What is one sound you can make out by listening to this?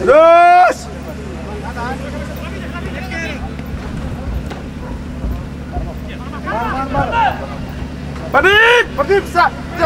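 Men shout loudly across an open field.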